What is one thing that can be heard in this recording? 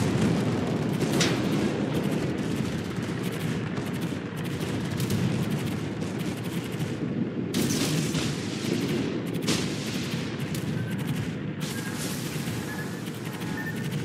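Heavy guns boom in the distance.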